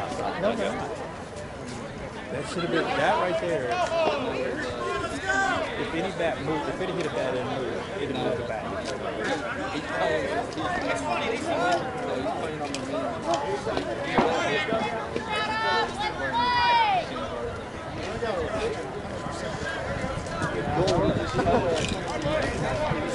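Several men talk and call out across an open field outdoors.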